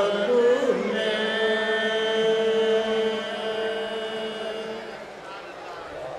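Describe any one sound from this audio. A harmonium plays sustained notes.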